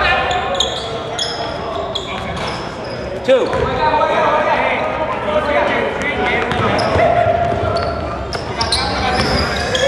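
Young men shout and call out across the gym.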